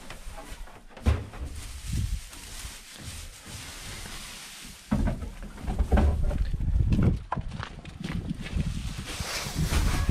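Hay rustles and crackles as a hand pulls at it.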